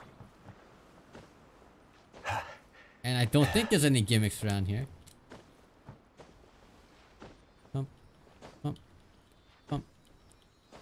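Light footsteps tap quickly on wood.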